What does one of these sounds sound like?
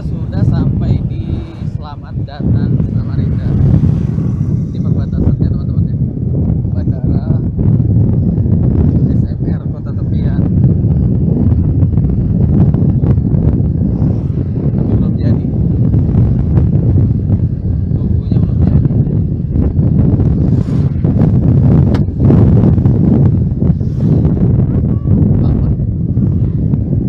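Wind rushes loudly past a moving motorcycle.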